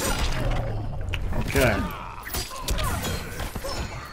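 Blades slash and clang.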